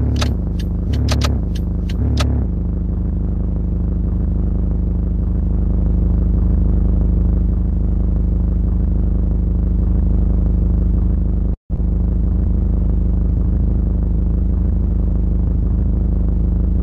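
A vehicle engine idles with a steady low rumble.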